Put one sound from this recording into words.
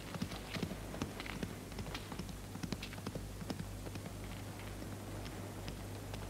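Footsteps crunch on dirt as a man walks.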